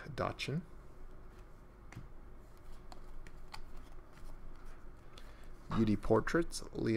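Trading cards slide and flick softly against each other.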